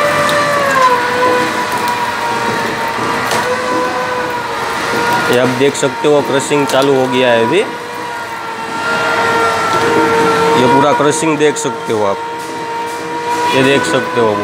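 A juicer motor hums steadily.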